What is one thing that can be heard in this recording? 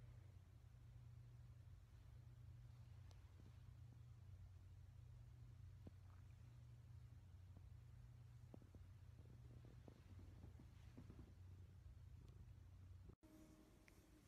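A cat purrs loudly and steadily up close.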